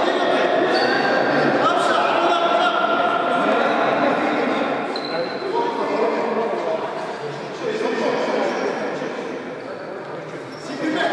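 Men talk and call out across a large echoing hall.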